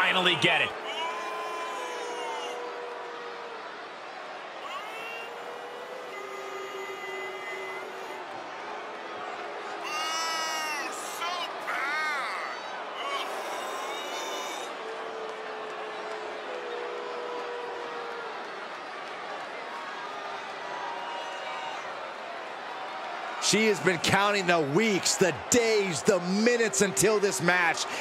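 A large crowd cheers and whistles in a big echoing arena.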